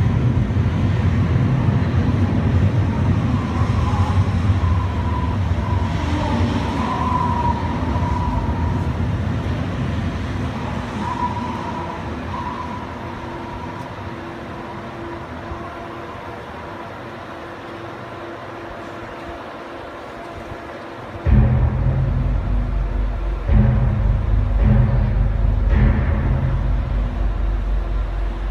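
Water sprays and hisses.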